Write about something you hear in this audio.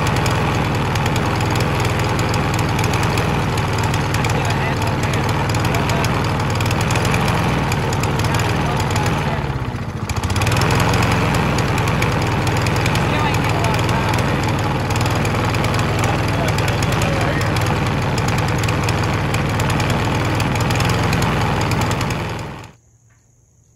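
A lawn mower engine runs loudly close by, briefly dipping before picking up again.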